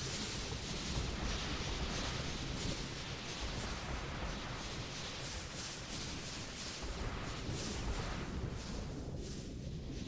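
Lava bubbles with a low rumble.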